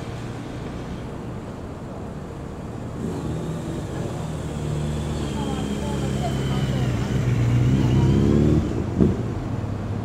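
A motorcade of motorcycles and cars approaches and passes with engines humming.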